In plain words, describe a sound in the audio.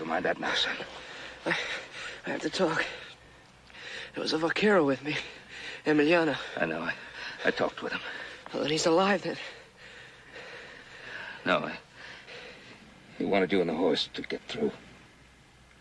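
An older man speaks gently and earnestly up close.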